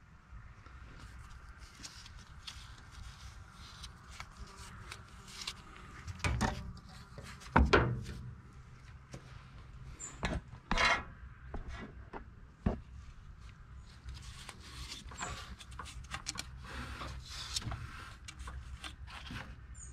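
A hand knocks and scrapes against metal parts close by.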